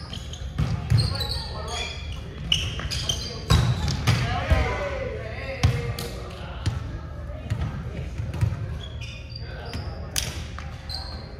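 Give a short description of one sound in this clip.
A volleyball thuds off players' hands and arms in a large echoing gym.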